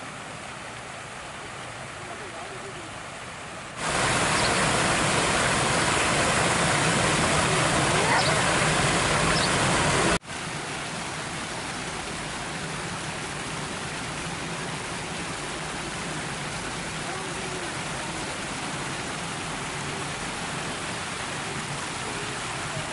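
Fountain jets splash and patter steadily into a pool.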